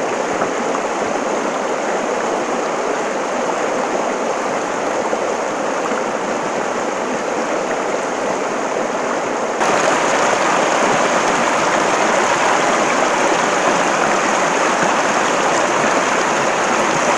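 A shallow river rushes and splashes steadily over rocks.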